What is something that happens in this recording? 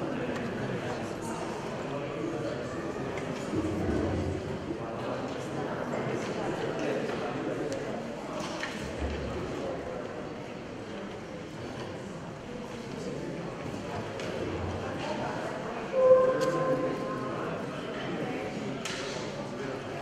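An electronic keyboard plays chords.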